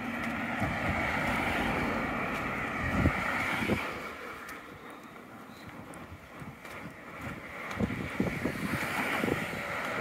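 Wind gusts and rumbles outdoors.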